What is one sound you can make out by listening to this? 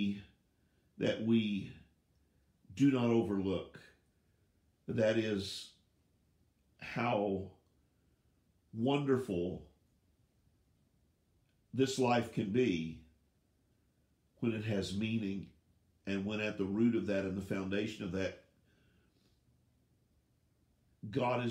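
An older man speaks calmly and closely into a microphone, with short pauses.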